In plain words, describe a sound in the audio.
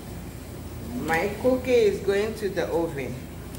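A woman speaks calmly close by.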